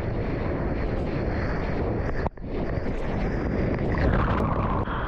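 Foaming surf rushes and hisses all around, close up.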